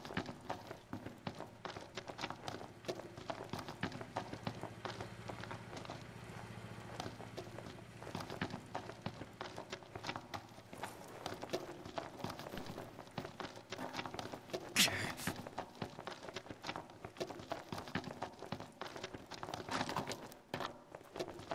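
Footsteps run quickly over hard rocky ground.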